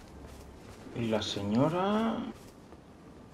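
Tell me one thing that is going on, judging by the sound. A young man speaks with animation into a headset microphone.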